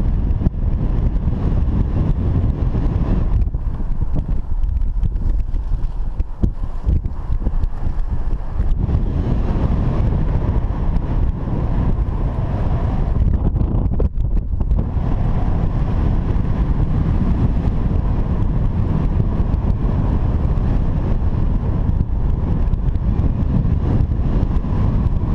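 Strong wind rushes and buffets steadily past a microphone high outdoors.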